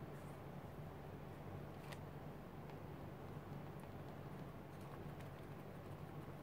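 Hands rub and press softly on paper.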